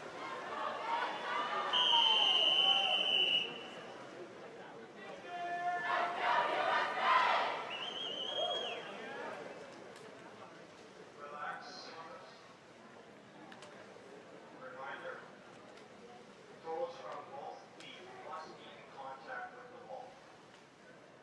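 A crowd of young people cheers and shouts in an echoing hall.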